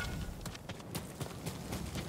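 A bonfire crackles nearby.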